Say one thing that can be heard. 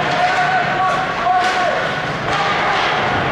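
A hockey stick clacks against the puck.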